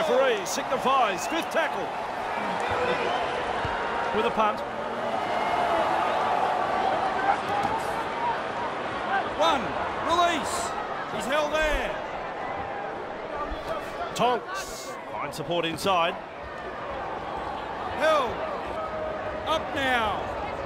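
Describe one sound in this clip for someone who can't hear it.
A crowd murmurs and cheers steadily in a large stadium.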